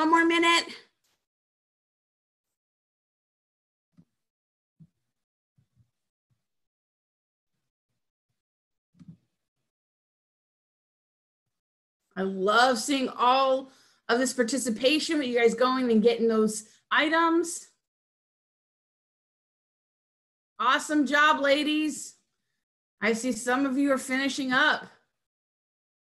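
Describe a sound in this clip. A young woman speaks calmly through an online call microphone, in short bursts with pauses.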